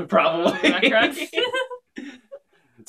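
Young people laugh together close by.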